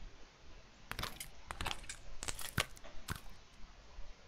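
Short clicks sound as menu options are selected.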